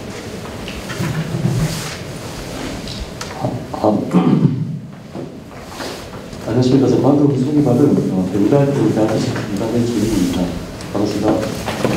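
A man speaks calmly into a microphone over loudspeakers in a large echoing hall.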